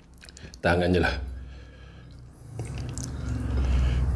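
Fingers scrape and squish through sauce on a plate.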